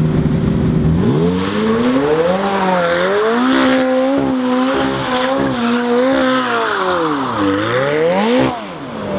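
A sports car engine roars and revs hard, rising and falling.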